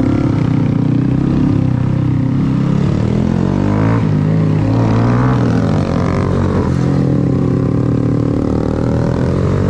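A motorcycle engine hums and revs up close.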